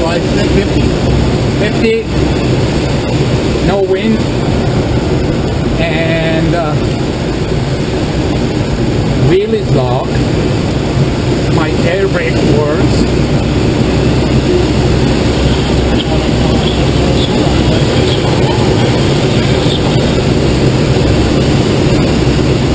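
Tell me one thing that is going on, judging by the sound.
Wind rushes loudly past a glider's open cockpit.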